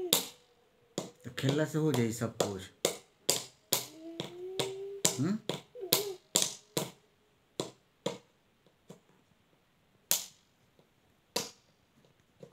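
A plastic bottle crinkles and clicks in a boy's hands.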